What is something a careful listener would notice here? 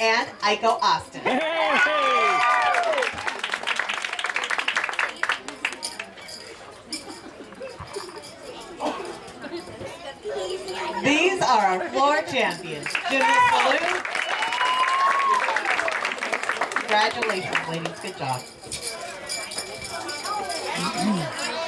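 Children in a crowd cheer and shriek with excitement.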